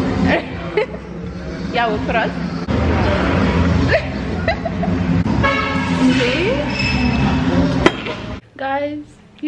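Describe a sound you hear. Young men laugh and chatter in a busy, echoing room.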